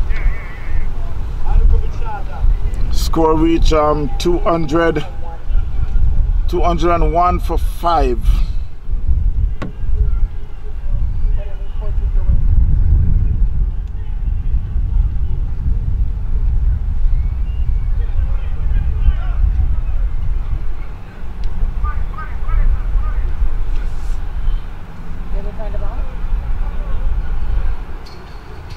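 Wind blows steadily across an open outdoor space.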